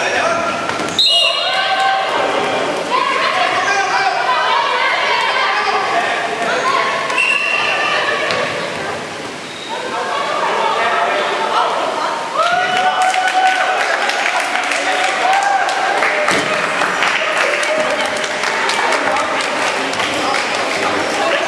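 Balls thud and bounce on a wooden floor.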